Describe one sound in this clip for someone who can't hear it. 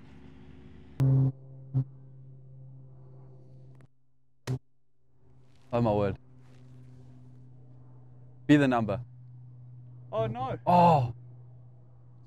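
A man speaks nearby in a relaxed voice.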